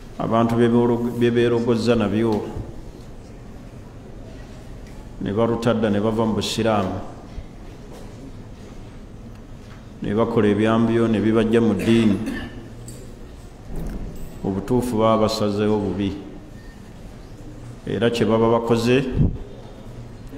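A man speaks slowly and firmly into microphones, in short bursts with pauses.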